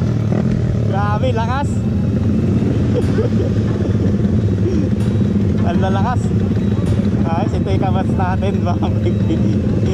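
Men shout over the engines outdoors.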